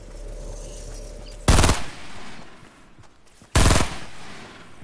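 A gun fires a few loud shots close by.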